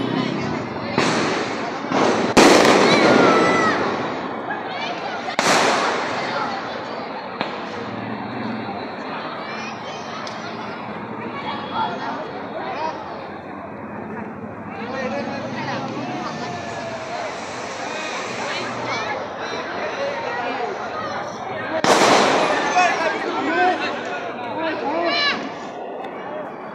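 Fireworks crackle and fizz loudly outdoors.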